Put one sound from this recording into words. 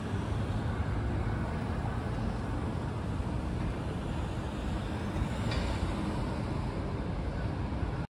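Steady low city traffic rumbles nearby, outdoors.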